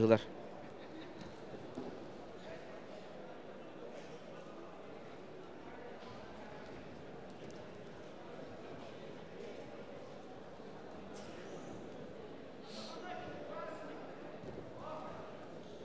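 Wrestlers' feet thud and shuffle on a mat.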